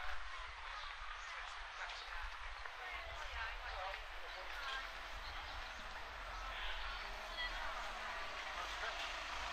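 People chatter faintly in the distance.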